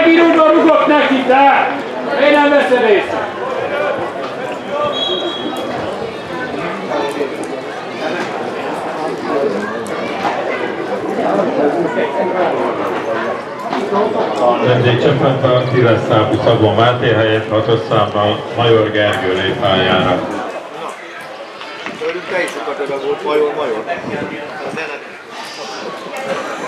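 Men shout to each other in the open air.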